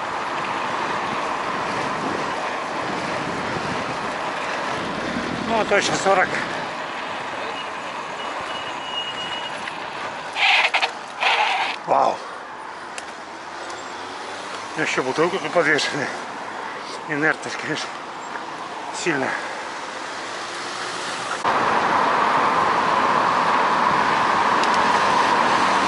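Wind rushes steadily over the microphone.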